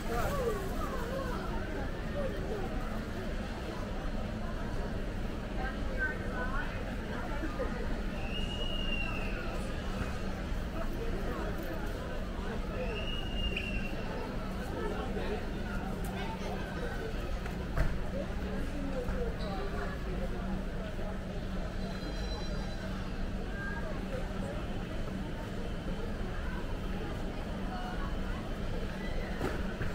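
Many shoppers chatter at a distance in a large echoing hall.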